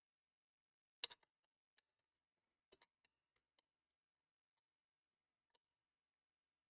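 Plastic parts click and knock as a laptop is taken apart.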